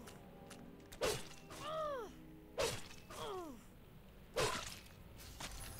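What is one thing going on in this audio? Sword blows strike with sharp ringing hits.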